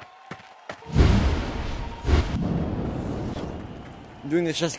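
A magic spell bursts with a loud whoosh and crackle.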